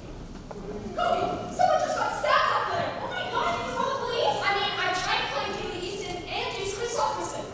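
A young woman speaks with animation to an audience in a large echoing hall.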